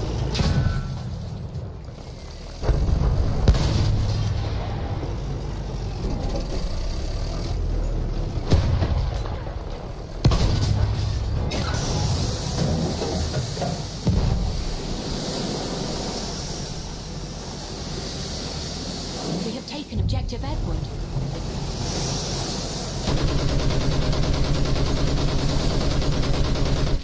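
A tank engine rumbles.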